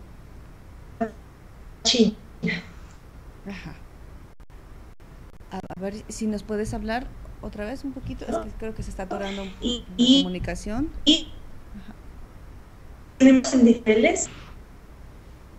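A woman speaks calmly through an online call, with a slightly tinny sound.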